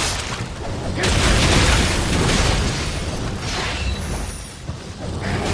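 Flames burst and roar loudly.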